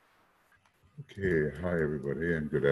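An elderly man speaks calmly through a headset microphone, as on an online call.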